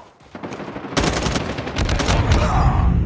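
Gunshots crack in a quick burst.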